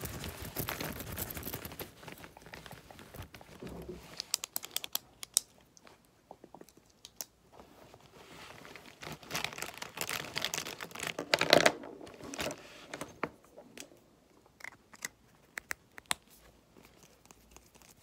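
Plastic pens and markers rattle and click against each other.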